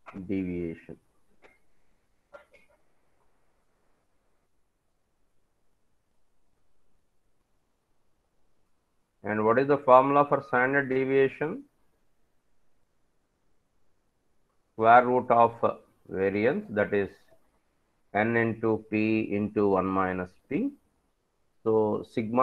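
A man speaks calmly through a microphone on an online call, pausing often.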